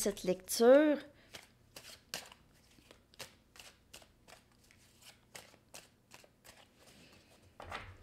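Playing cards flick and snap as they are shuffled.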